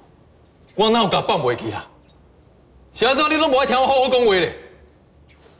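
A man speaks sharply and with frustration, close by.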